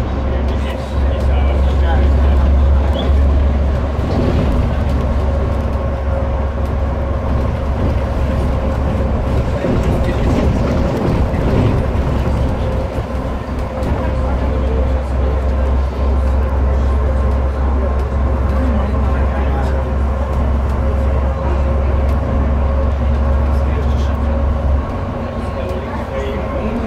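A bus engine hums steadily from inside the cabin.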